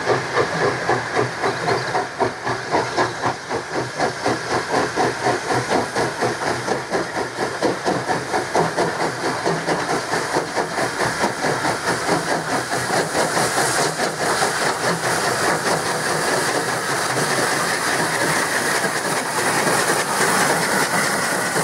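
A steam locomotive chuffs rhythmically as it approaches.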